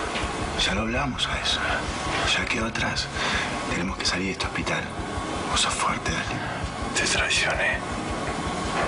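A man speaks close by in a low, tense voice.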